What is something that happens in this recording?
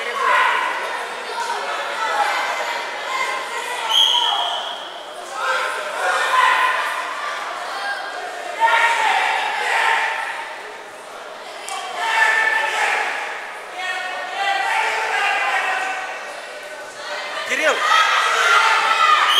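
A man shouts encouragement from nearby, echoing in a large hall.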